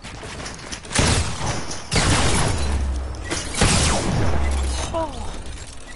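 Loud game blasts and crashes burst out in quick succession.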